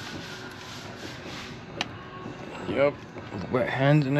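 A disconnect switch lever snaps over with a sharp click.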